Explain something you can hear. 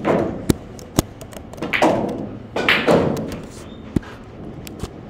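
Billiard balls clack against each other.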